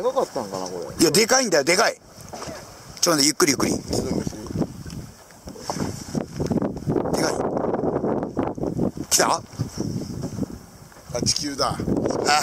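Water laps and splashes against a boat's hull.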